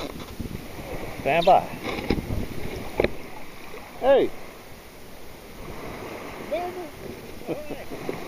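Water laps gently against a float.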